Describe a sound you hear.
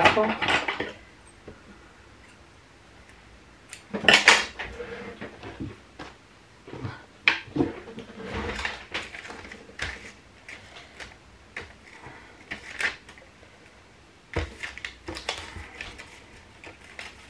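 Twine rustles against paper as hands tie it around a bag.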